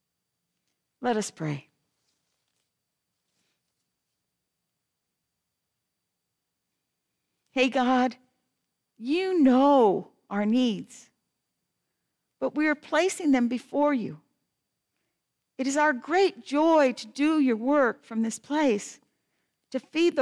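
A woman reads aloud calmly through a microphone, with pauses between phrases.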